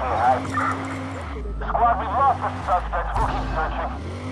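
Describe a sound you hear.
A car crashes into another car with a loud bang.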